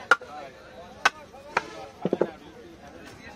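A wooden mallet knocks on a knife's back.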